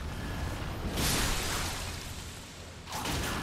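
A magic blast bursts with a loud whoosh.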